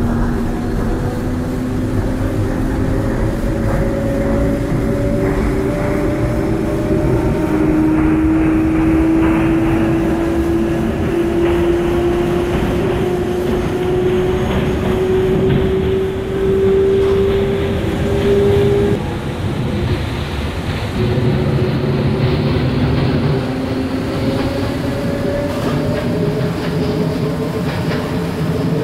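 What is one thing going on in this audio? Train wheels rumble on rails.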